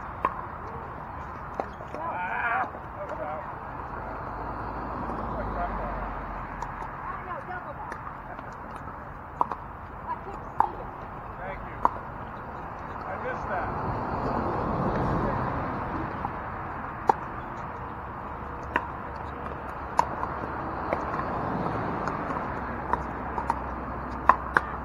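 Paddles hit a plastic ball with sharp pops, again and again.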